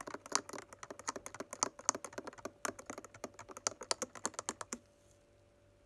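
A spoon clinks rapidly against a glass.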